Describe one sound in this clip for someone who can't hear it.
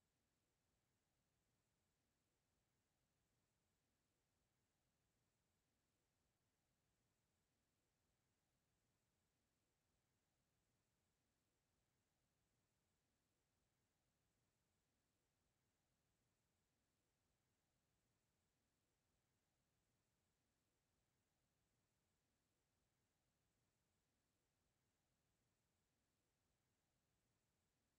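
A clock ticks steadily and softly.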